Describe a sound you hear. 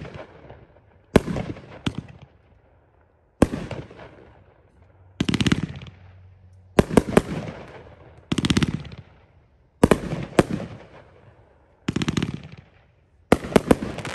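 Fireworks launch and burst with loud booming bangs, echoing outdoors.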